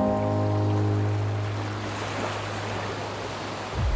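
Waves break and wash onto a beach.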